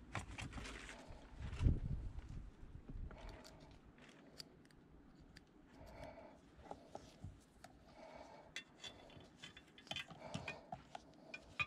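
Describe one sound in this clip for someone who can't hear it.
A metal clip clicks and rattles against a glass jar.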